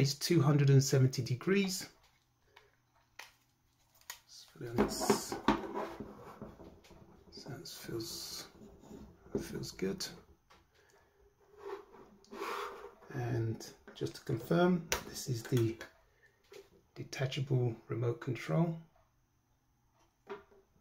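Plastic parts of a small stand click and rattle as it is adjusted by hand.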